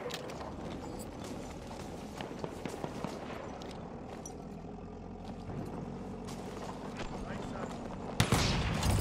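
A low rumble of battle rolls on steadily.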